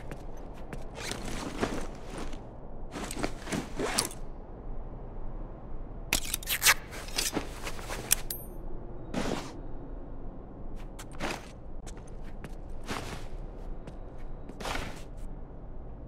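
Short menu swooshes and clicks sound now and then.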